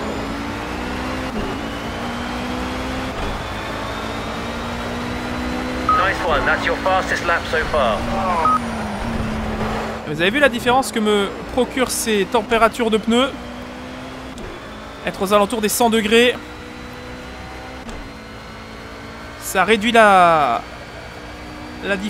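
A racing car engine roars and climbs in pitch as it speeds up.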